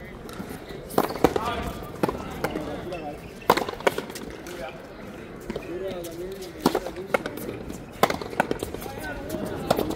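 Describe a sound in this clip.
A ball smacks sharply against a wall and off rackets.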